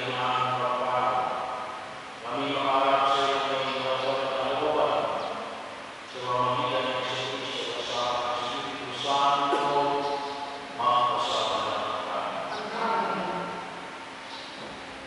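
A man chants in a steady singing voice through a loudspeaker in a large echoing hall.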